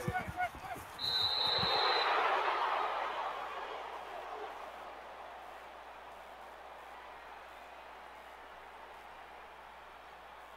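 A stadium crowd roars and cheers, then slowly dies down.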